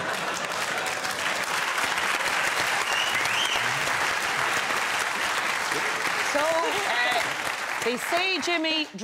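A studio audience applauds and cheers loudly.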